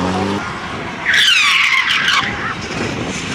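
Car tyres squeal on tarmac.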